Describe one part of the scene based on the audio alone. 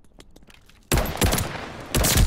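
A rifle fires rapid shots up close.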